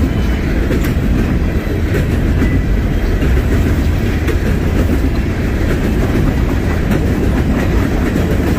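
Steel wheels clack rhythmically over rail joints.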